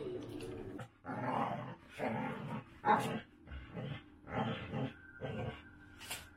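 A dog barks and howls close by.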